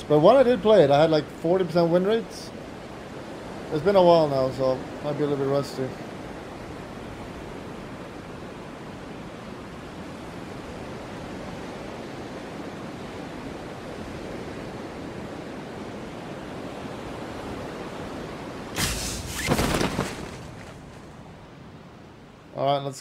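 Wind rushes loudly and steadily during a freefall.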